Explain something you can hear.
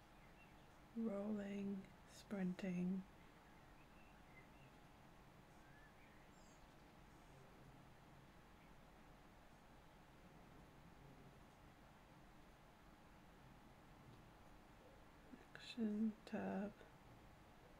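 A young woman speaks briefly and calmly into a close microphone.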